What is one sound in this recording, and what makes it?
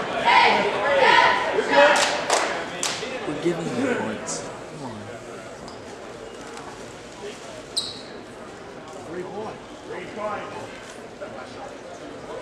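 A crowd of spectators talks and cheers in a large echoing gym.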